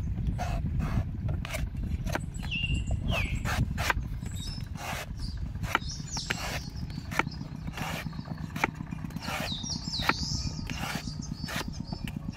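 A knife scrapes and slices through coconut husk.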